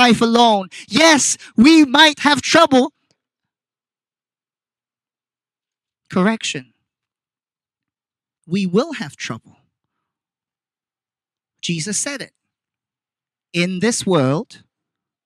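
A young man speaks through a microphone and loudspeaker outdoors, in short bursts with pauses.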